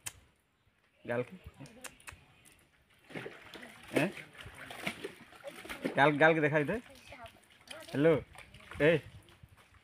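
Water splashes as a girl washes.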